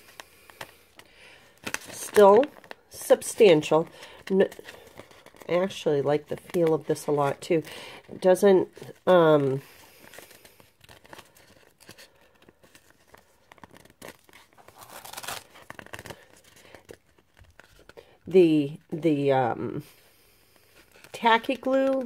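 Thin paper rustles and crinkles as it is handled.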